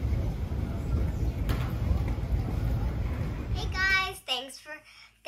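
A baggage carousel rumbles steadily.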